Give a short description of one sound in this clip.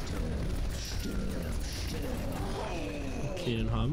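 Rapid gunfire blasts in a game.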